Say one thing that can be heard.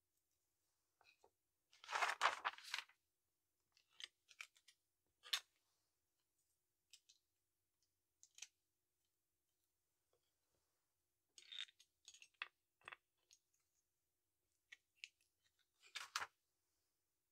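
Loose plastic bricks rattle and clatter on a table.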